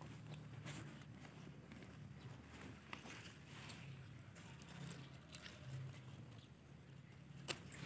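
Fingers scrape and dig in dry soil.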